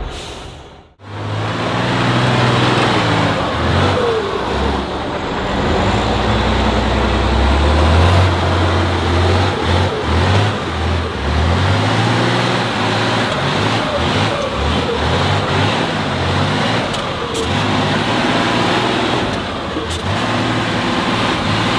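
A heavy truck engine roars and revs as it climbs a rough slope.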